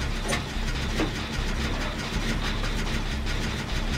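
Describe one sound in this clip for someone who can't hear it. A generator engine rattles and clanks during a repair.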